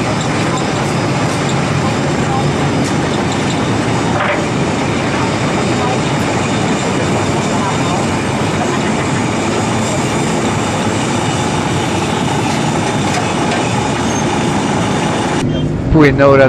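Water rushes and splashes against a moving boat.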